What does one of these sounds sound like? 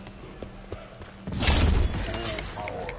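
A weapon fires with a loud, bright whoosh.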